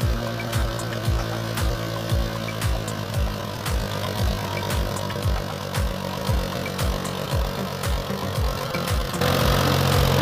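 A tractor diesel engine chugs steadily up close.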